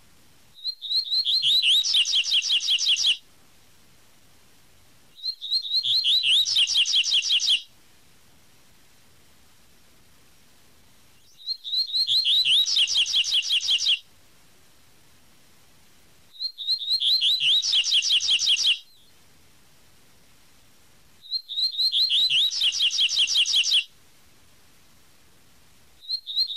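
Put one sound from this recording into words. A small bird sings a fast, repeated whistling song in bursts, with pauses between.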